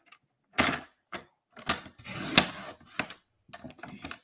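A paper trimmer blade slides and cuts through card.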